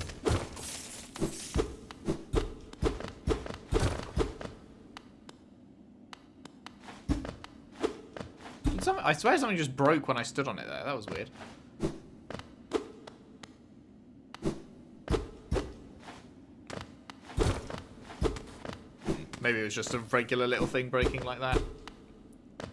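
A blade swishes and strikes with sharp hits.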